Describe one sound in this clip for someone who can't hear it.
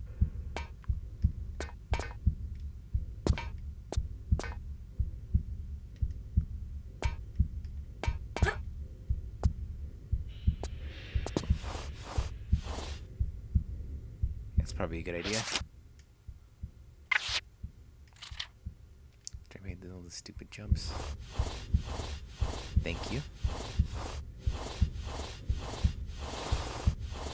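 Footsteps thud quickly and steadily.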